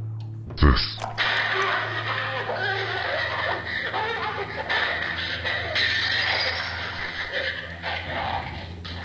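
A crackly, garbled recording plays from an old tape.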